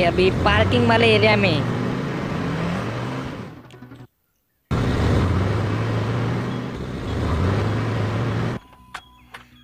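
A van engine hums steadily as the van drives along.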